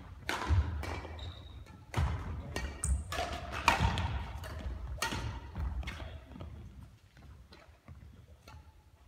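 A shuttlecock is struck sharply by rackets in a large echoing hall.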